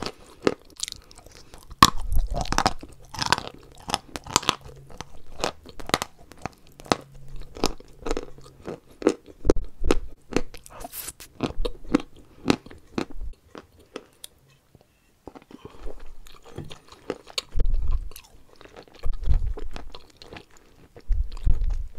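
A woman chews soft food with loud, wet, close mouth sounds.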